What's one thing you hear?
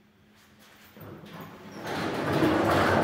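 Elevator doors slide shut with a soft rumble.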